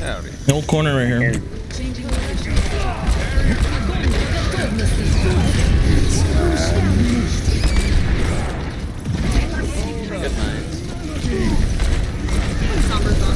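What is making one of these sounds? Video game weapons fire and blast.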